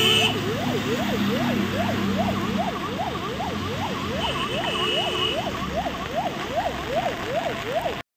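A fire engine siren wails quickly up and down, close by.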